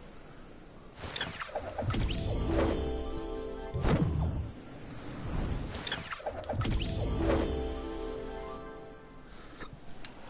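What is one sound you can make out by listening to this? Wind rushes loudly past a falling figure.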